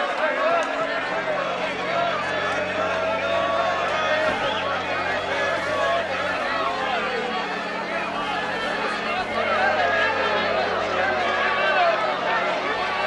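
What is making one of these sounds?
A large crowd of men and women chatters and shouts excitedly all around.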